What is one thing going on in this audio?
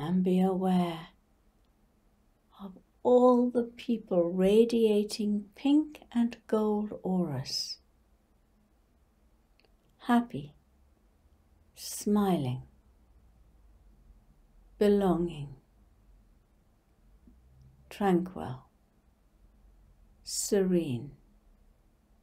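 An elderly woman speaks calmly and slowly into a close microphone, with long pauses.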